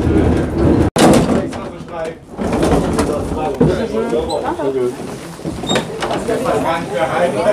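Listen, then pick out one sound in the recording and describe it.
Children chatter and call out close by.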